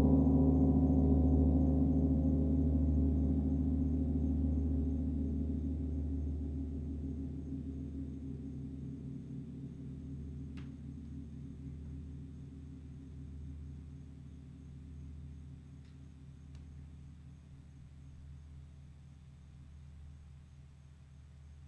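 A large gong hums deeply and slowly fades away.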